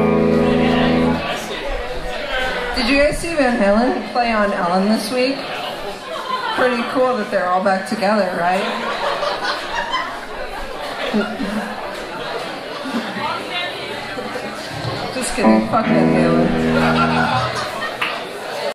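Electric guitars play through amplifiers in an echoing room.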